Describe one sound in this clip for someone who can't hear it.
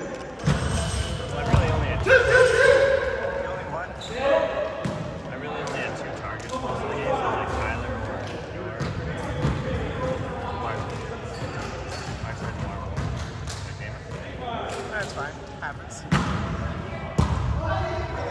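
Young men and women call out and talk in a large echoing gym.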